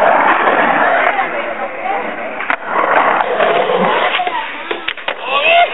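A skateboard clacks against a concrete edge.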